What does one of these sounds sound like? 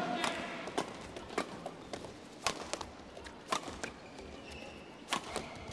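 Shoes squeak on a court floor.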